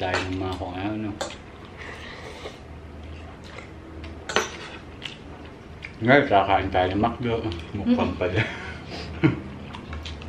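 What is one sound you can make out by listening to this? People chew and slurp food close by.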